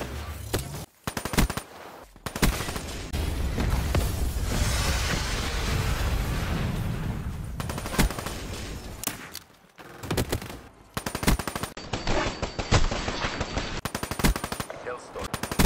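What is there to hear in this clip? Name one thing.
Guns fire in sharp rapid bursts.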